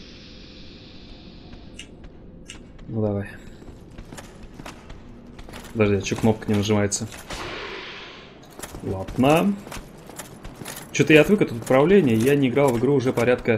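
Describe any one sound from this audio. Heavy armored footsteps clank on a stone floor.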